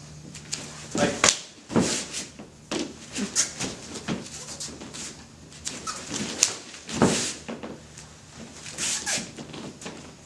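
Cloth uniforms snap and rustle with sharp movements.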